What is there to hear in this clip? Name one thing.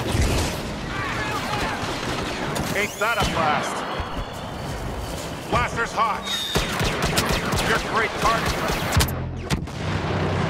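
Blaster shots zap and whine in quick bursts.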